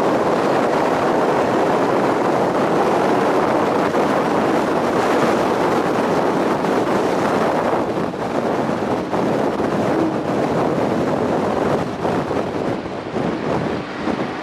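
Tyres roar steadily on the road as a car drives along.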